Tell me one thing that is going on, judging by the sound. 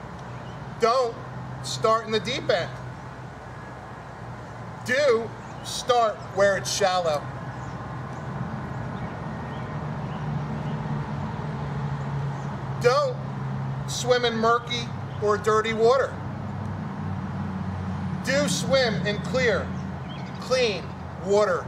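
A middle-aged man reads aloud expressively, close to a microphone.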